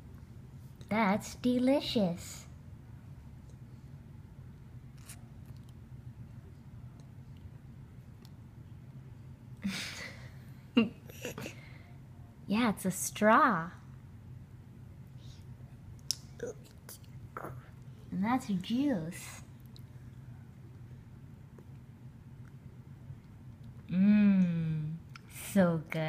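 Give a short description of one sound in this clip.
A small child babbles and vocalises in short bursts close by.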